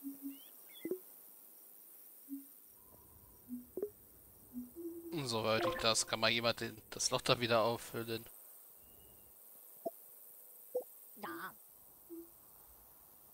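Soft, short game blips sound every now and then.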